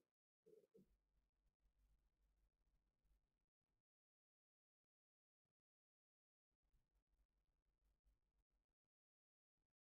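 A man breathes slowly and deeply, close by and very quietly.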